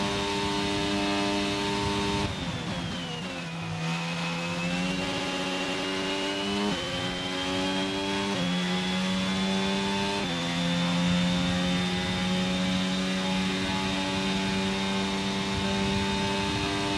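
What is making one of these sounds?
A racing car engine screams at high revs, dropping as the car brakes and then climbing again.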